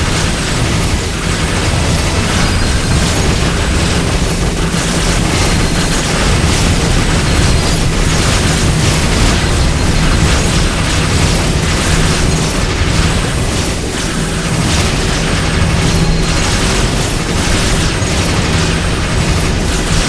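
Rapid laser fire and blasts crackle without pause.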